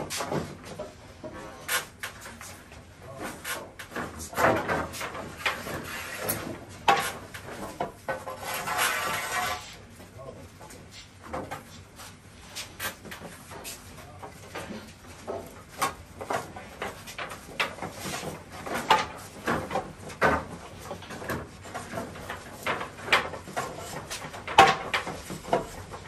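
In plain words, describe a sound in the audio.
Wooden boards knock and clatter as they are handled.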